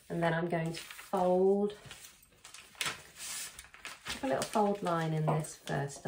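Paper rustles as it is handled and folded.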